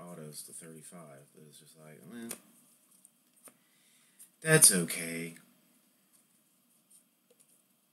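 Trading cards slide and flick against each other in a hand.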